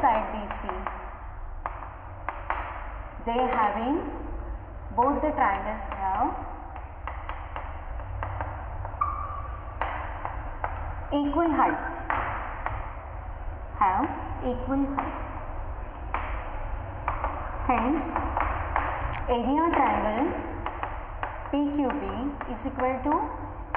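A woman speaks calmly and clearly, as if teaching a class, close by.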